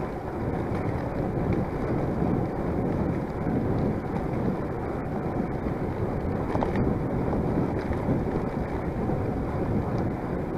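Bicycle tyres hum steadily on a paved path.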